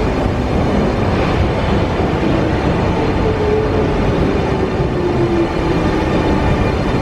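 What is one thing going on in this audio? Train brakes squeal with a falling whine.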